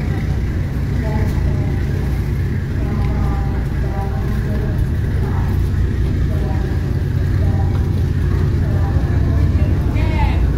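Men talk faintly in the distance.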